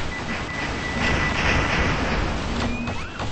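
An explosion bursts with a rumbling blast.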